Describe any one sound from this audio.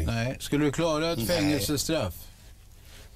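Another middle-aged man talks in reply, close to a microphone.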